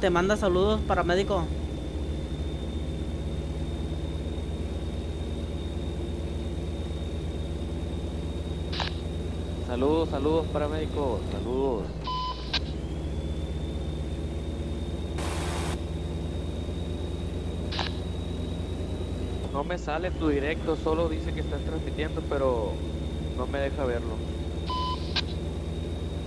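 A truck engine hums steadily at a low pitch.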